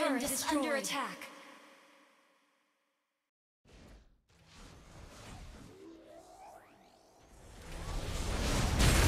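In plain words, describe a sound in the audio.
Bright electronic game sound effects chime and whoosh.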